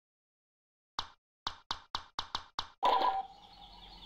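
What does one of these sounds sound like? Game menu clicks blip in quick succession.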